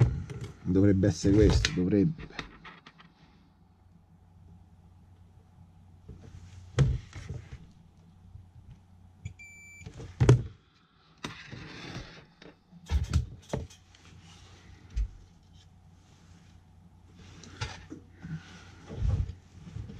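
Fingers tap and knock against hard plastic.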